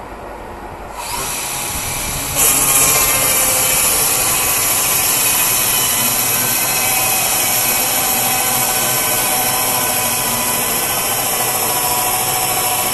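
A portable band sawmill cuts through a log.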